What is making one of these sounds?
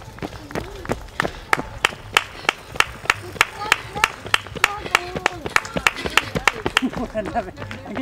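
Running footsteps slap on asphalt.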